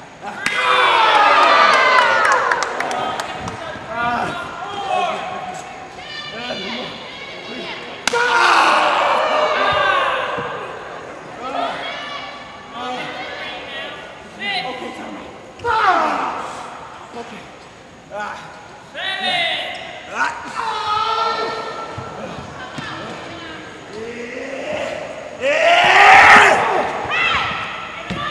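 A crowd of children and adults cheers and shouts in a large echoing hall.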